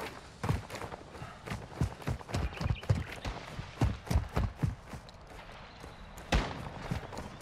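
Footsteps thud quickly and unevenly on the ground.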